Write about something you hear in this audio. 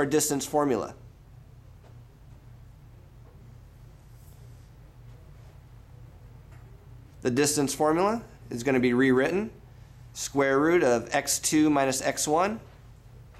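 A young man speaks calmly nearby, with pauses.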